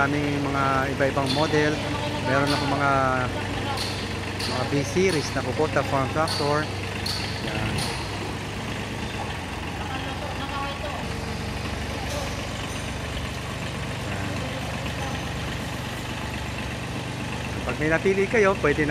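A man talks with animation close by, over the engine.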